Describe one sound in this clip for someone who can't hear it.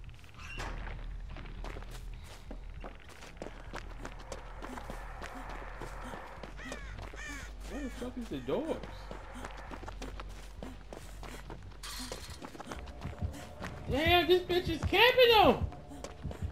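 Footsteps run quickly over grass and dirt.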